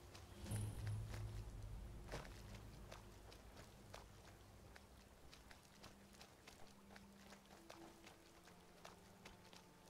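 Footsteps crunch on dirt and stone.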